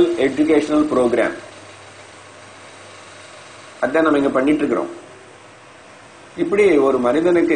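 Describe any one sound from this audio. An older man speaks calmly and deliberately into a close microphone, with pauses between phrases.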